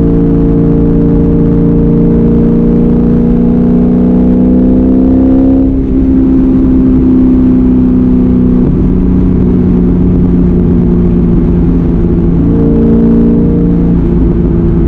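Road noise rumbles steadily inside the car.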